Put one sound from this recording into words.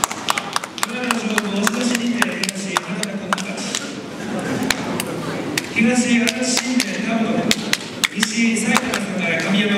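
An elderly man calls out loudly in a drawn-out chant.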